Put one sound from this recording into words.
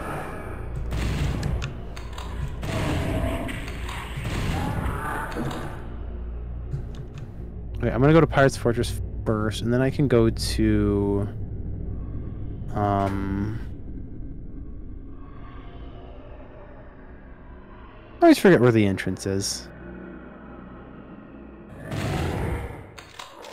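Shotgun blasts boom from a video game.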